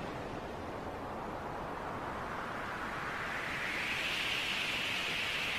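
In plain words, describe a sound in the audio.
Icy magic whooshes and crackles in bursts.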